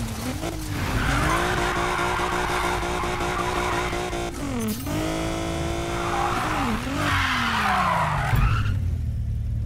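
Tyres screech as a car drifts around bends.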